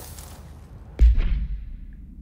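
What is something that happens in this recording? A crate smashes apart with a loud crack.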